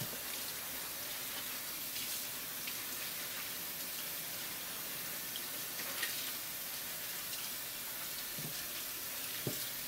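Hands scrub and splash in running water.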